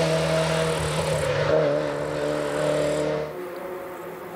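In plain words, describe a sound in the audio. A rally car engine roars loudly as the car speeds through a bend.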